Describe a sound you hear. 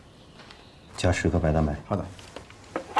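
A man speaks briefly and calmly.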